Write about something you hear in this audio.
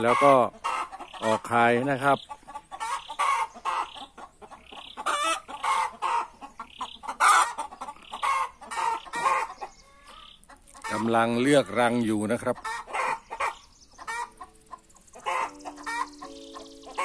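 Chickens cluck and squawk.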